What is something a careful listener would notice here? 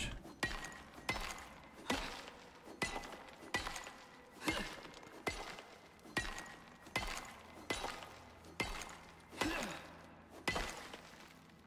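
A pickaxe strikes rock in quick, regular blows.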